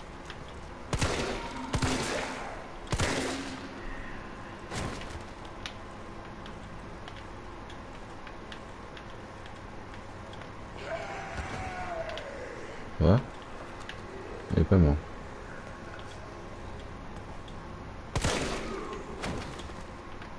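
A handgun fires shots that echo in a hard-walled room.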